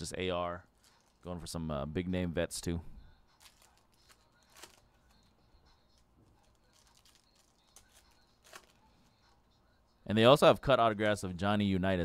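Foil card packs crinkle as they are torn open.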